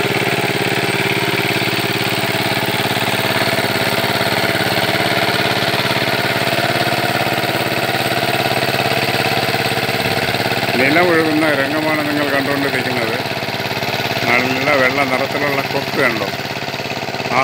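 A power tiller engine chugs as the machine ploughs a flooded rice field.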